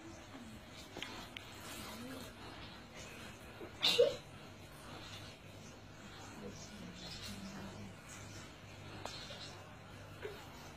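Young children chatter quietly in the background.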